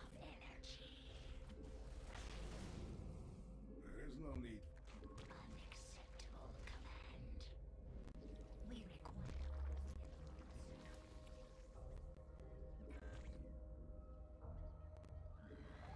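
Alien creatures chitter, hiss and screech amid clicking sound effects of a video game.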